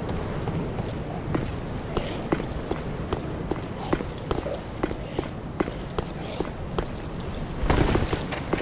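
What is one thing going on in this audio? Armoured footsteps tap quickly on a stone roof.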